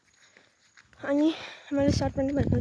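A girl speaks close by, calmly.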